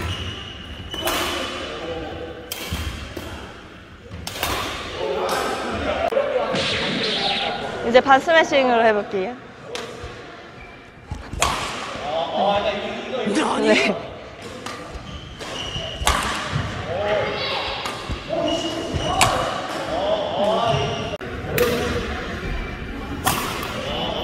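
A racket strikes a shuttlecock with sharp smacks that echo in a large hall.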